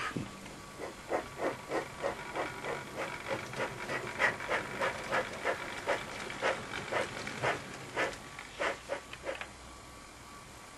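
A model train rolls along the track with a steady clicking.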